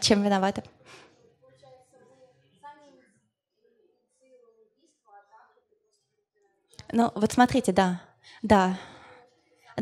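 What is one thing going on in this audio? A young woman speaks calmly into a microphone, with pauses.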